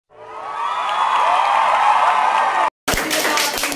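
A crowd of young people cheers together.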